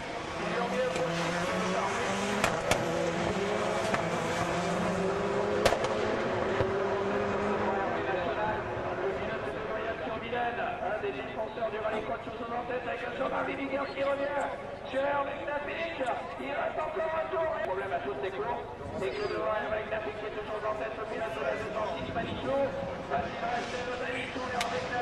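Rally car engines roar and rev nearby.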